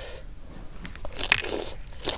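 A young woman chews food crunchily.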